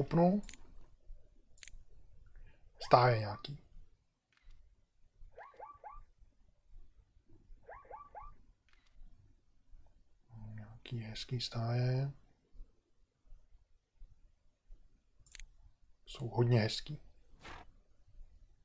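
A middle-aged man speaks calmly into a microphone in short bursts.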